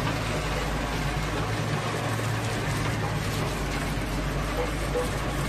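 A heavy machine engine drones steadily.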